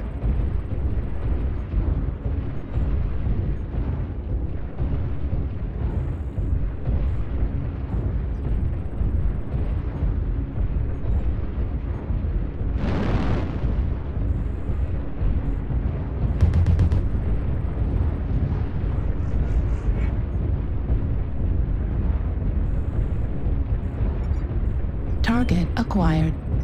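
A deep mechanical rumble drones steadily throughout.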